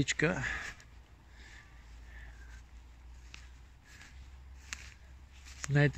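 Footsteps crunch and rustle through dry grass.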